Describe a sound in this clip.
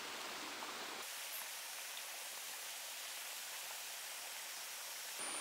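Rain patters steadily on leaves.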